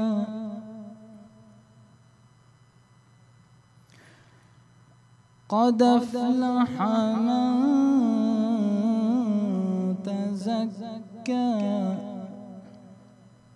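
A young man chants melodically into a microphone, his voice echoing in a large hall.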